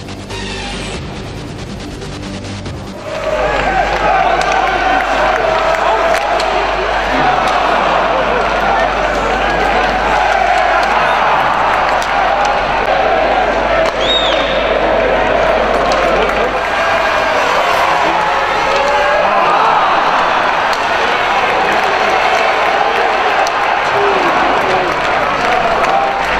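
A large crowd of fans chants and cheers loudly in an echoing arena.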